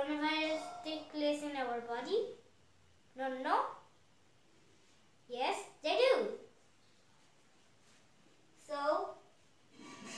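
A young boy speaks close by in short, clear bursts.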